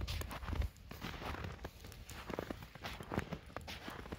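A wood fire crackles and pops close by.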